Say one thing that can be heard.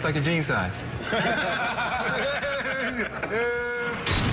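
A group of men laugh together.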